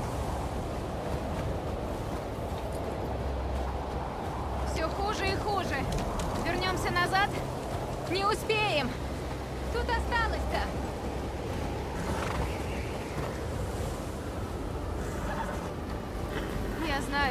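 A horse's hooves trudge through deep snow.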